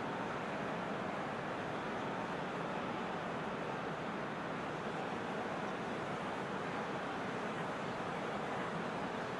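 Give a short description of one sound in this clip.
A large crowd roars steadily.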